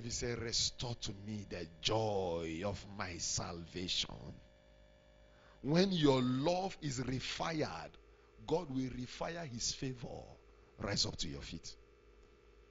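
A man preaches with animation through a microphone.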